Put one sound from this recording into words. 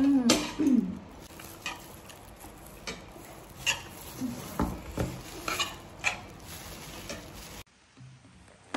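A young woman chews food noisily.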